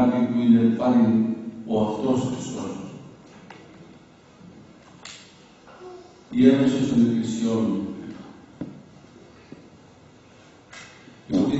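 An elderly man speaks slowly and calmly through a microphone, with pauses.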